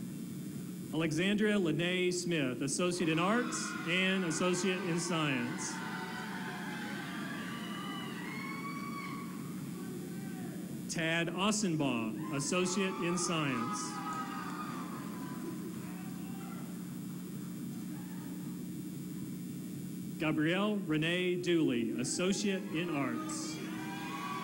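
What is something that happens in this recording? A woman reads out names over a loudspeaker in a large echoing hall.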